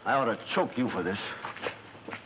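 A man speaks loudly and urgently.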